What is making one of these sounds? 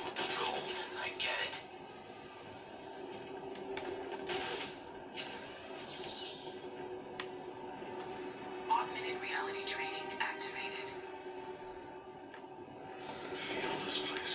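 Action game sounds of whooshing and clanging play from a television's speakers.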